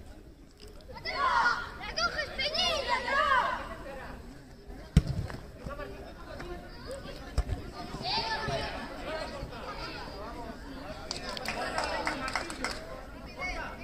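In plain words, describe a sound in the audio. Young players shout and call out across an outdoor field.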